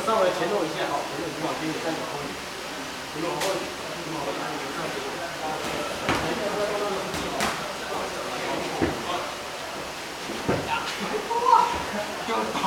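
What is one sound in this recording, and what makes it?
Several young men talk casually in an echoing hall.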